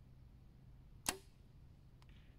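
A bowstring snaps sharply as an arrow is released.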